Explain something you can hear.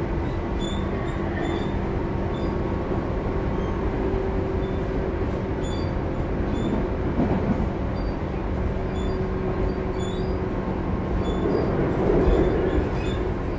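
A train rumbles steadily along the tracks close by.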